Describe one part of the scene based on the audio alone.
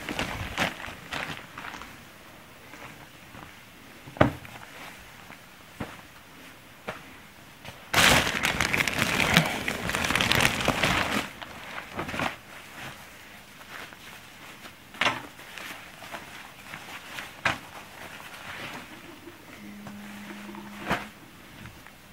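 Fabric rustles as clothes are moved and shuffled.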